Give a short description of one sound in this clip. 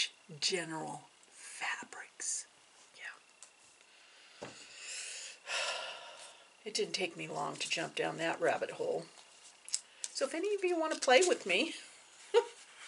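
A middle-aged woman talks calmly and close by.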